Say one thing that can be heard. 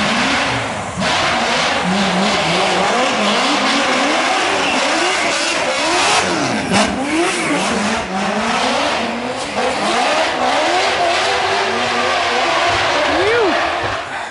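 Drifting cars' engines scream and rev up and down.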